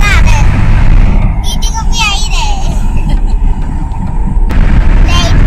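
A young girl squeals and laughs in a high voice close by.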